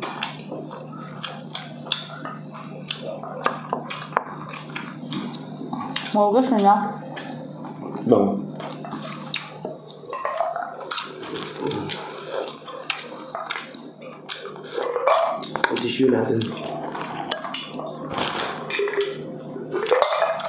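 Utensils clink against plates.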